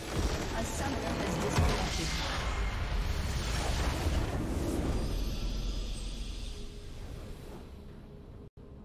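A huge magical explosion booms and rumbles, then slowly fades away.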